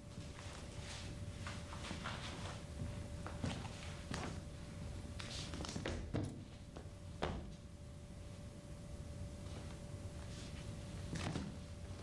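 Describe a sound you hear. A middle-aged man talks at a distance in a room.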